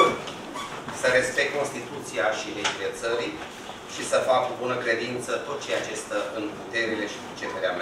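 A man speaks solemnly through a microphone in a large room.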